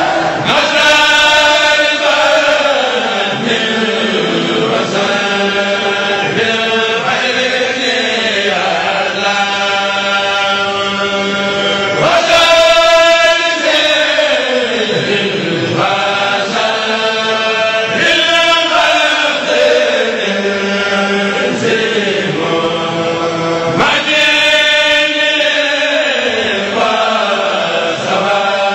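A group of men chant together in loud unison through a microphone.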